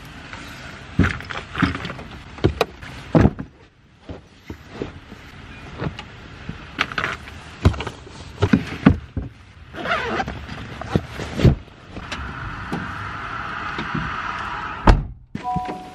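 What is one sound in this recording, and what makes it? Bags thump down onto a car's floor.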